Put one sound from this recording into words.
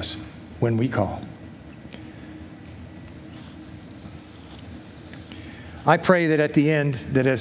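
An elderly man speaks slowly into a microphone, heard through loudspeakers in a large hall.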